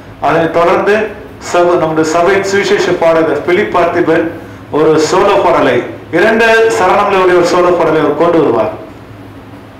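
A man speaks calmly and closely through a headset microphone.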